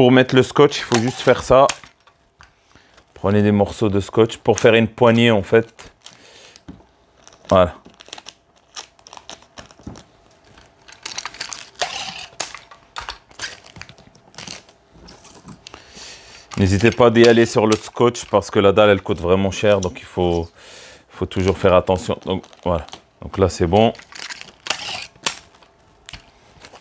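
Packing tape screeches as it is pulled off a roll.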